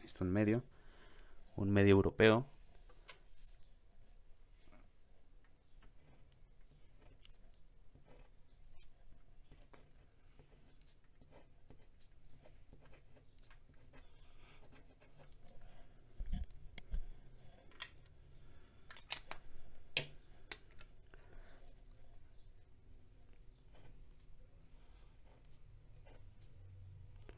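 A pen nib scratches softly across paper.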